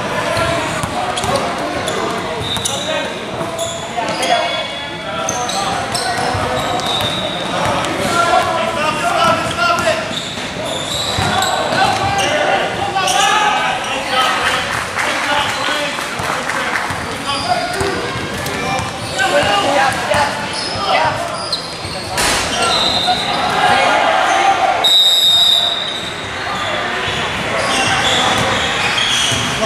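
Young boys shout and call out in an echoing gym.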